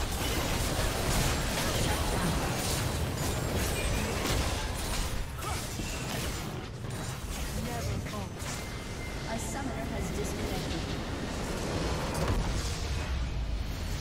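Spell effects crash and boom in a chaotic battle.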